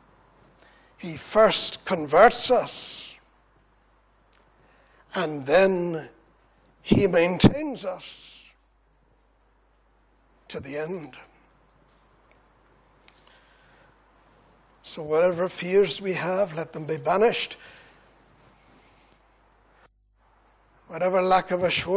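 An older man speaks into a microphone in bursts with long pauses.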